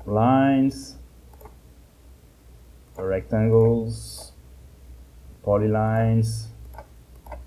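A man speaks calmly in short phrases close to a microphone.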